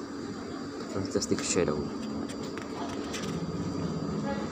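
Paper pages rustle as a book's pages are flipped.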